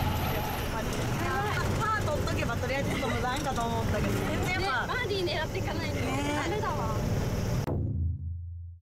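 Young women talk and laugh together close by.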